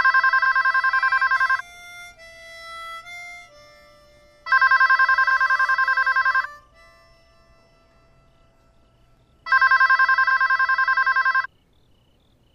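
A telephone rings loudly in repeated bursts.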